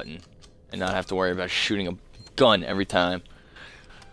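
Buttons click on a phone panel.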